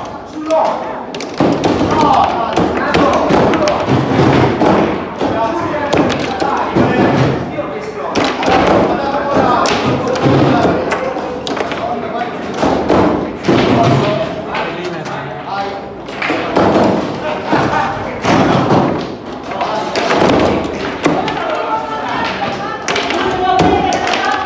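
Foosball rods rattle and clunk as they are spun and pushed.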